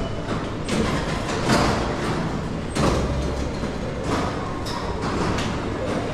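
A metal turnstile gate clunks open and shut.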